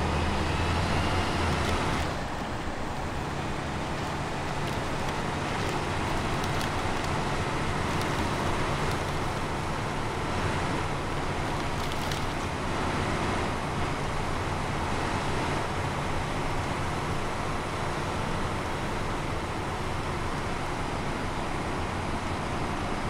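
A truck engine rumbles steadily as the truck drives slowly.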